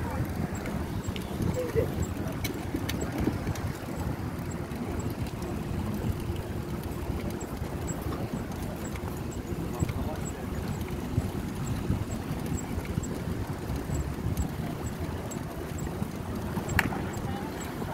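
A bicycle freewheel ticks quickly and steadily.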